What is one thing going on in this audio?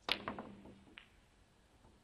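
Snooker balls click together.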